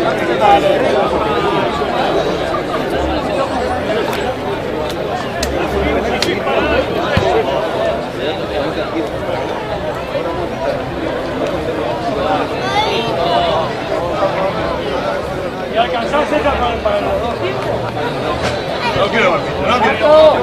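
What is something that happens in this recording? Rugby players shout to each other across the field.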